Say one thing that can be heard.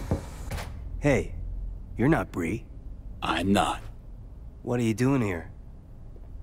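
A young man speaks casually and close by.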